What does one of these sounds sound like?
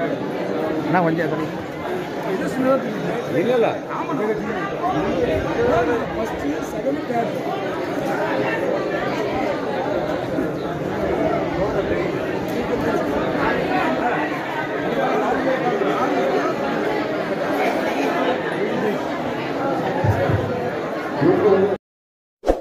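A crowd of men chatter all around, close by.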